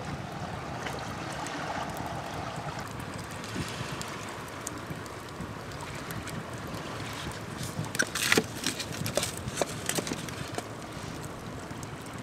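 A wood fire crackles and pops up close.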